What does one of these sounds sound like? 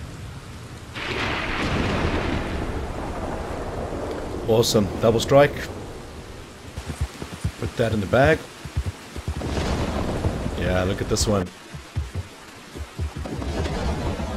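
Thunder rumbles and crackles overhead.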